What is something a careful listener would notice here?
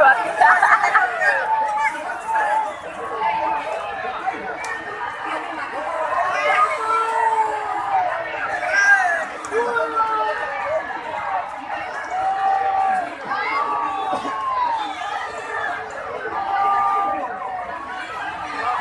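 Men nearby call out and talk excitedly.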